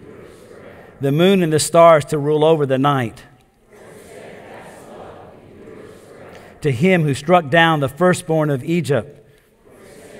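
An elderly man reads aloud slowly through a microphone in a large echoing hall.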